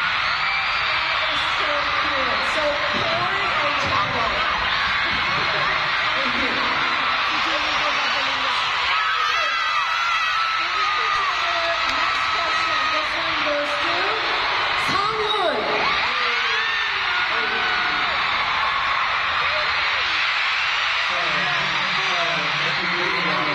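A young man speaks through loudspeakers.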